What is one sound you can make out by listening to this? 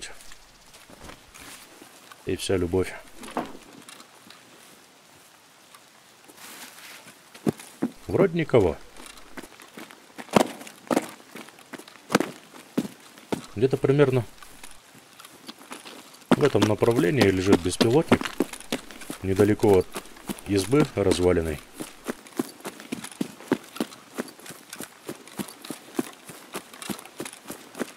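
Footsteps rustle through grass and crunch on rough ground.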